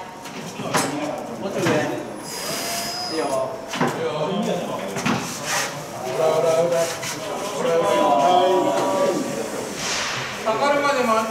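Men talk and call out to each other nearby in an echoing indoor space.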